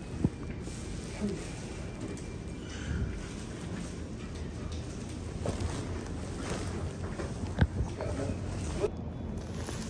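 Fabric rustles as a blanket is moved close by.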